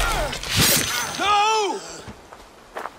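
A man shouts.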